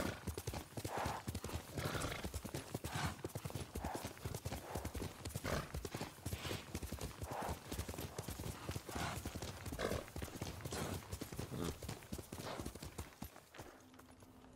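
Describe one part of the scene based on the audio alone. A horse gallops with hooves thudding in a steady rhythm.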